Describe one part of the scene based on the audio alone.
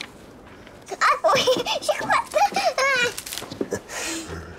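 A young girl laughs and squeals playfully close by.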